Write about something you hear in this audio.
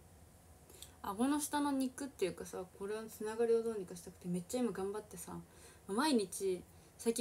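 A young woman talks softly and closely into a microphone.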